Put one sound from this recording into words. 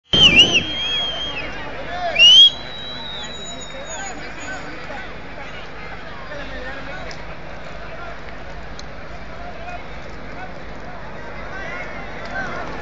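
A large crowd of fans chants and shouts outdoors.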